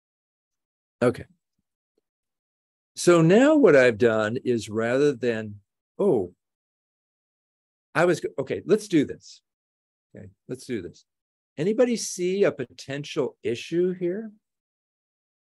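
A middle-aged man speaks calmly into a microphone in an online call, with pauses.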